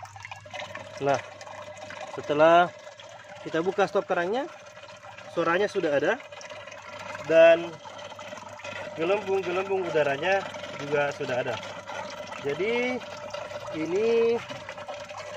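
Air bubbles up and gurgles steadily through water.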